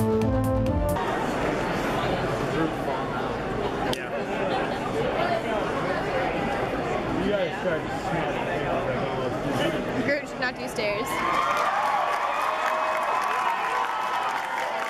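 A large crowd chatters and murmurs in an echoing hall.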